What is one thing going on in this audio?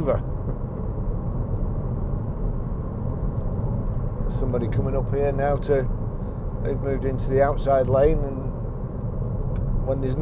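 A car engine hums steadily with road rumble inside the cabin.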